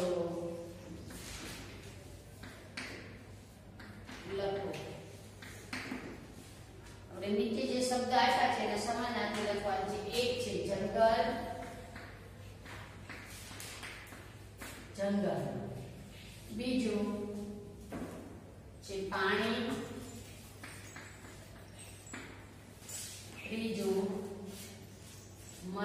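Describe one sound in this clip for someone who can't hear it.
A woman speaks clearly in a calm teaching voice, close by.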